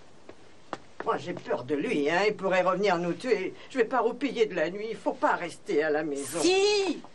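A woman speaks tensely close by.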